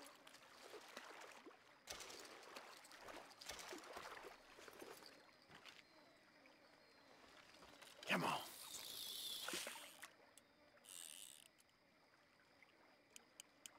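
Waves wash against a rocky shore.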